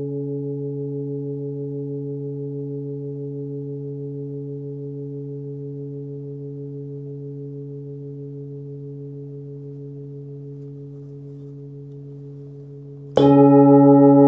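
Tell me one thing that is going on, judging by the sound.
A metal singing bowl hums with a deep ringing tone that slowly fades.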